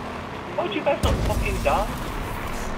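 A vehicle lands with a heavy thump.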